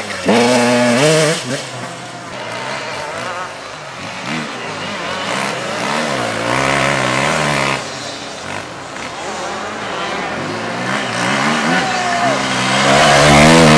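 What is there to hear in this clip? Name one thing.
A dirt bike engine revs loudly, rising and falling in pitch.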